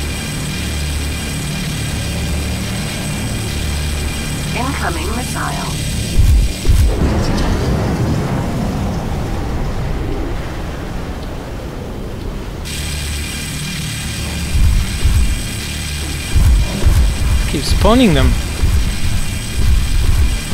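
A laser beam fires with a buzzing whine.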